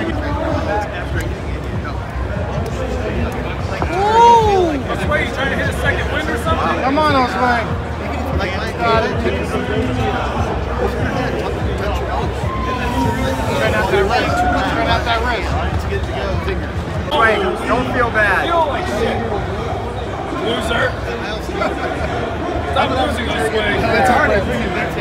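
A middle-aged man talks nearby.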